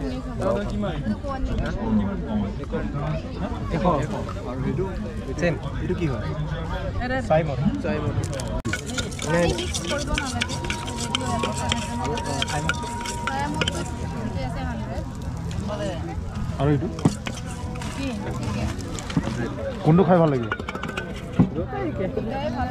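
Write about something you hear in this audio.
Several men and women talk nearby.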